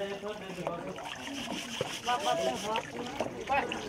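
Water splashes and sloshes in a basin.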